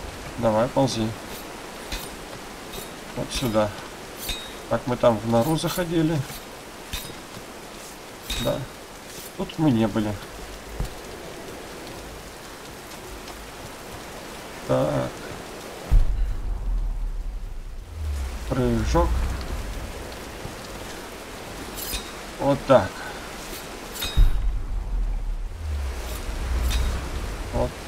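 Hands and boots scrape and knock on rock during a climb.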